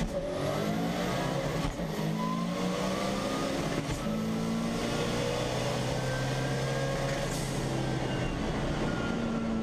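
A race car engine roars loudly from inside the cabin, climbing in pitch and dropping briefly at each gear change.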